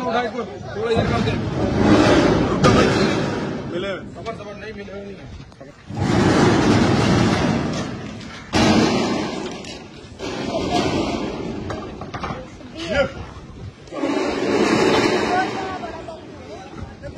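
A group of men shout loudly together.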